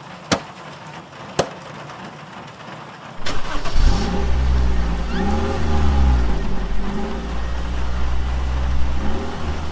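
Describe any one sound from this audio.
Heavy rain pours steadily outside a car.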